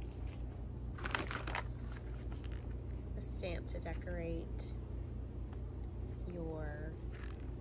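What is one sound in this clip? Plastic wrapping crinkles as a packaged stamp set is handled.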